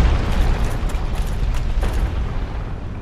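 Armored footsteps clank quickly on stone.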